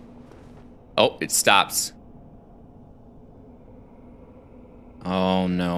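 A young man speaks into a close microphone in short, lively bursts.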